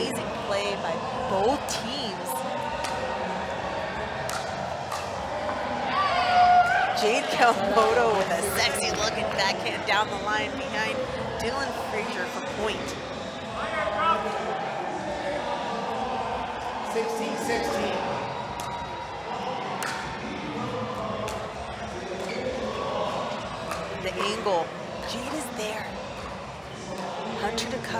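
Paddles pop sharply against a plastic ball in quick rallies.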